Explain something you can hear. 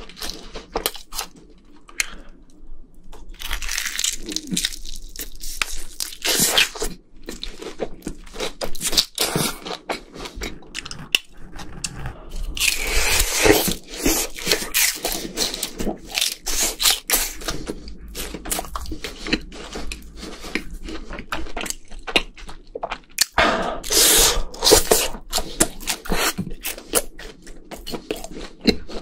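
A young man chews crunchy fried food loudly and close to a microphone.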